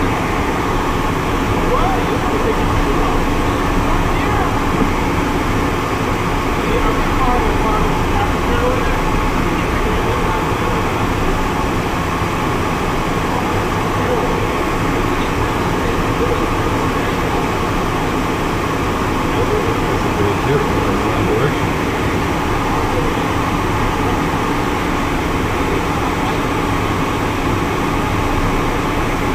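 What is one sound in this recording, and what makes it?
Wind rushes past the cockpit.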